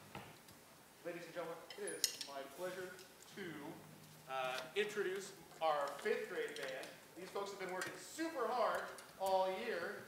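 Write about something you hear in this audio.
A man speaks calmly into a microphone over loudspeakers in a large hall.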